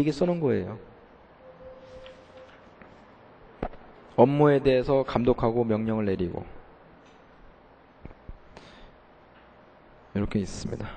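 A young man speaks calmly into a microphone, in short bursts with pauses.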